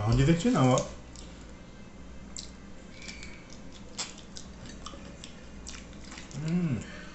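A young man chews and smacks his lips while eating.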